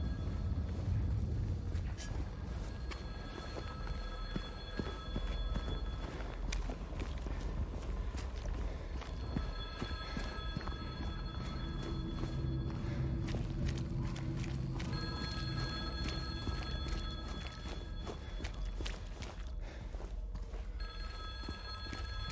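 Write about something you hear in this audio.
Footsteps fall on hard pavement at a steady walking pace.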